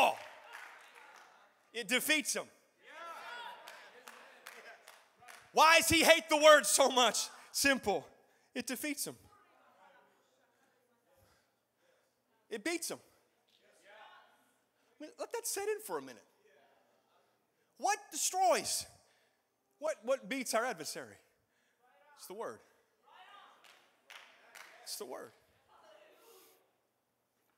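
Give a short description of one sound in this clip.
A man speaks with animation into a microphone in a large echoing hall, pausing often.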